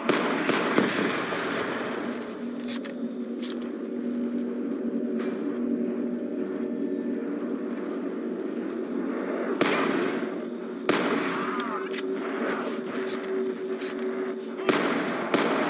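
A rifle fires loud single shots.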